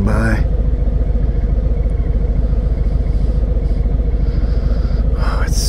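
A motorcycle engine idles close by with a steady, deep rumble.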